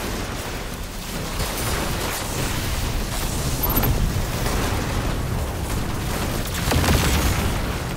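A game weapon fires rapid energy shots with a crackling hum.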